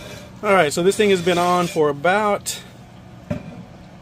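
A heavy lid scrapes as it is lifted off a metal pot.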